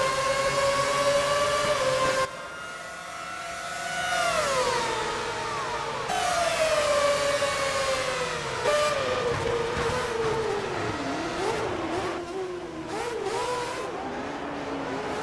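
A Formula One V8 engine screams at high revs and shifts down.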